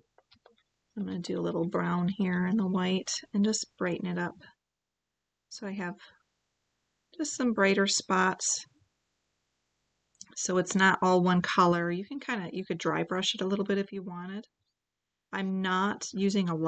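A woman talks calmly into a microphone, close by.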